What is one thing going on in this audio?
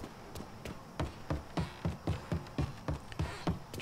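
Footsteps thud quickly on a hard floor.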